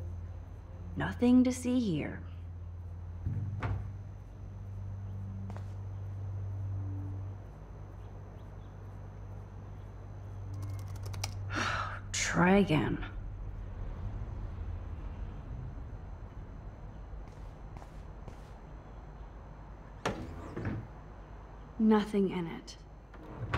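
A young woman speaks quietly to herself.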